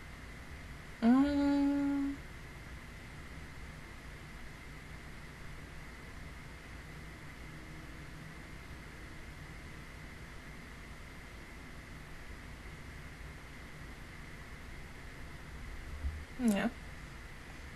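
A young woman makes short humming sounds close to a microphone.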